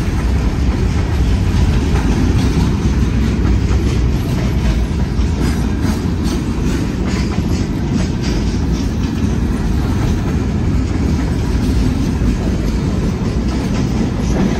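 Train wheels clack and squeal on the rails.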